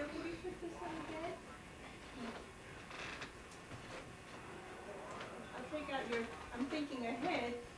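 A small child babbles and chatters nearby.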